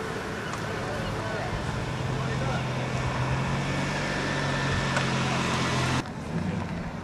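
A small car engine hums as the car drives slowly past.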